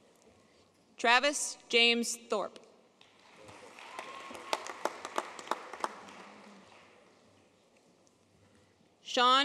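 A woman reads out names through a loudspeaker in a large echoing hall.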